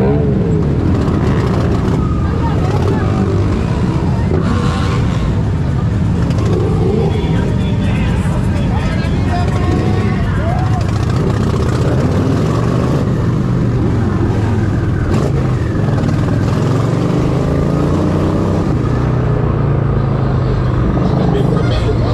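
Other motorcycle engines rumble and rev nearby.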